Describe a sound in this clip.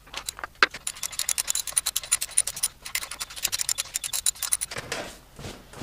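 A ratchet clicks rapidly.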